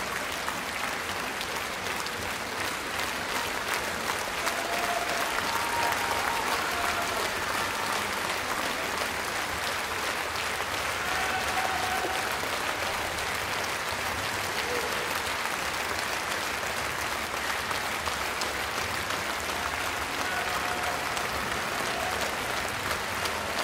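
A large audience applauds loudly and steadily in an echoing hall.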